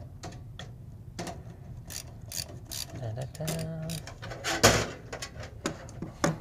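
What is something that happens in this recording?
A screwdriver clicks and scrapes against a metal case.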